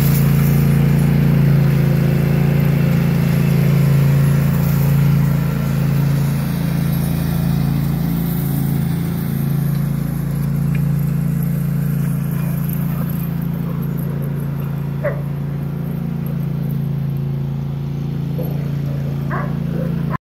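A small engine hums steadily nearby.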